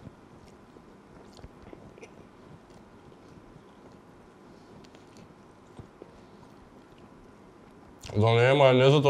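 A young man chews food wetly close to a microphone.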